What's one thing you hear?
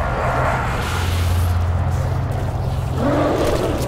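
An energy sword crackles and hums.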